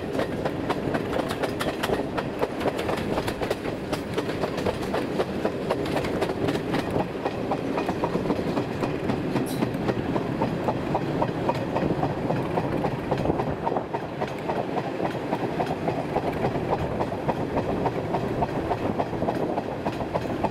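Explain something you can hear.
Wheels clack over rail joints.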